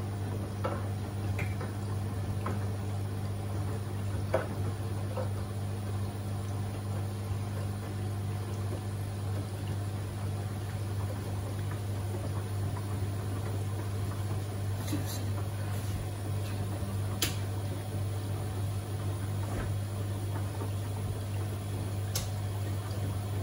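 A washing machine drum turns with a steady low hum.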